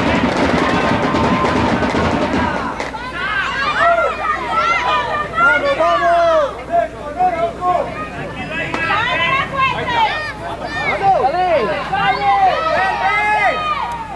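Children shout across an outdoor sports field.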